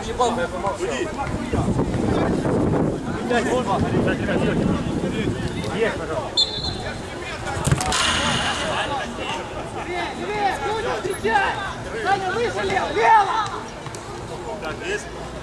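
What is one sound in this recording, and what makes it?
Men call out to each other across an open outdoor pitch.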